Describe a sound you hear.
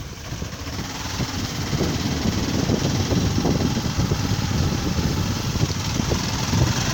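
A motorbike engine hums steadily while riding.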